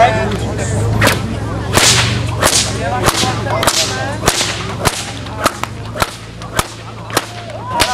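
Wooden sticks clack as they hit pins.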